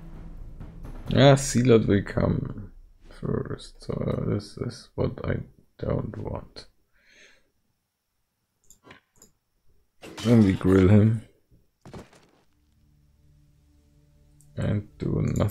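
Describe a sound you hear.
A man talks casually into a close microphone, in bursts with pauses.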